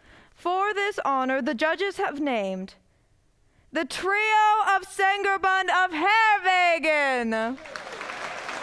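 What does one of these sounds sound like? A young woman sings loudly in an echoing hall.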